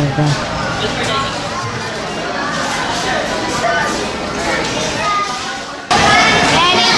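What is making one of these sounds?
A crowd murmurs and chatters in a busy, echoing room.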